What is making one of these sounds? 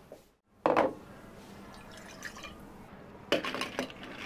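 Liquid pours into glass jars.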